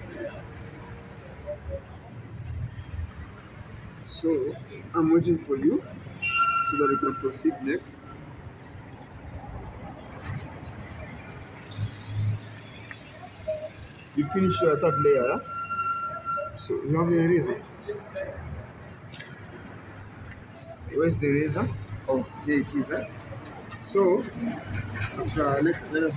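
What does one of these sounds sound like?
A pencil scratches and rubs on paper.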